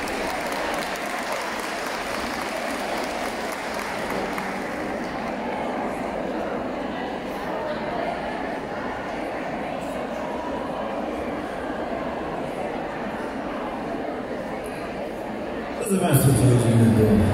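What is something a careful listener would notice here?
A band plays live music through loudspeakers in a large echoing hall.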